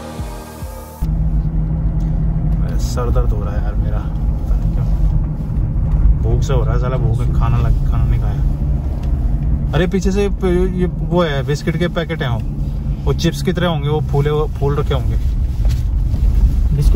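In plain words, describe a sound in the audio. A car engine hums steadily as tyres roll over the road.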